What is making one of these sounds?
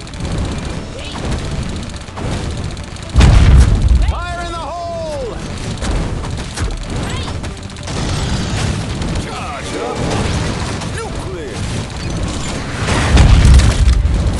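Game turrets fire rapid shots.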